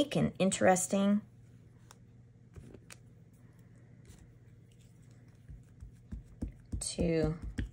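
A stamp block taps softly on paper.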